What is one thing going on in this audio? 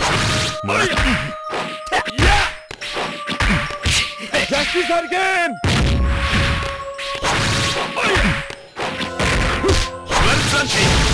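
A fighter grunts and shouts during attacks.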